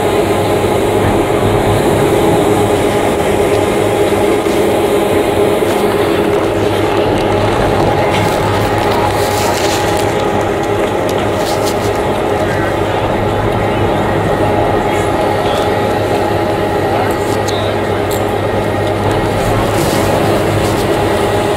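A chairlift's machinery hums steadily close by.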